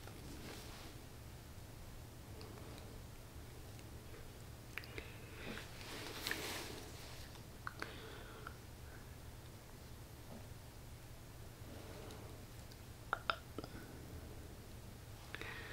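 Lipstick rubs softly across lips.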